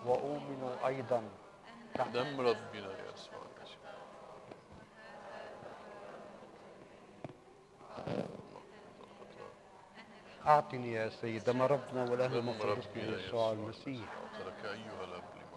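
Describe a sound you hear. A man chants in a slow, melodic voice through a microphone.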